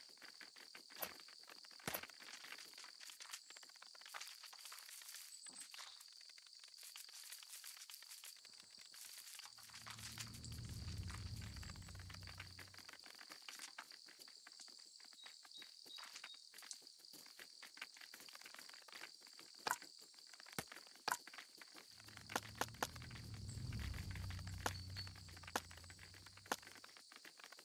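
Short interface clicks sound now and then.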